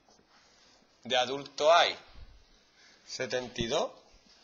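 A man speaks calmly close by, in short phrases.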